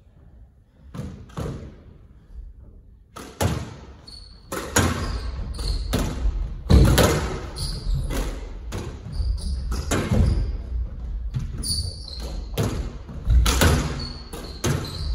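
A squash ball cracks off rackets and the front wall, echoing around the court.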